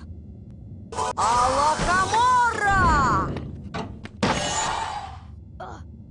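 A magical spell crackles and whooshes with a rising and falling shimmer.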